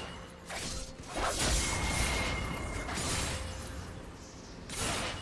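Video game fighting effects whoosh and clash in bursts.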